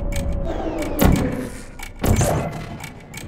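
An energy gun fires with a sharp zapping burst.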